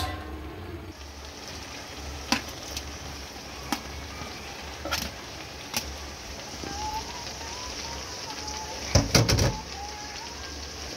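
Food sizzles faintly in a hot pan.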